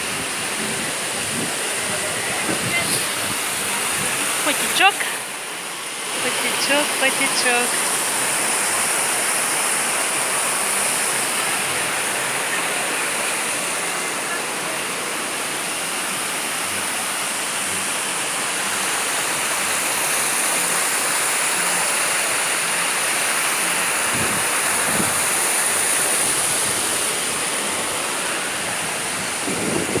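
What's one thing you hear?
Water rushes and splashes over rocks.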